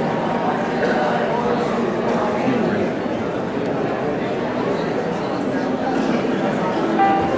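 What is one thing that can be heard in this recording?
A piano plays in a large hall.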